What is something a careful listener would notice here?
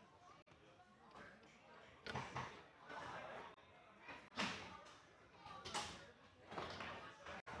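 Foosball rods clack and the ball knocks sharply against the table.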